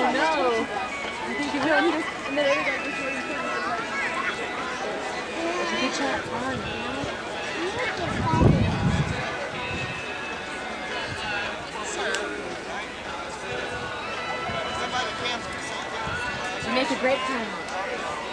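Children chatter and talk nearby outdoors.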